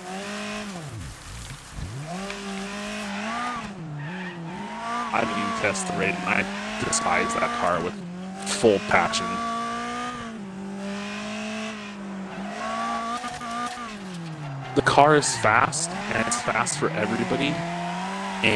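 A racing car engine revs up and down through gear changes.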